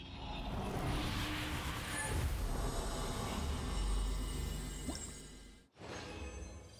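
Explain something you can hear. Magical energy swirls and roars in a loud, rushing surge.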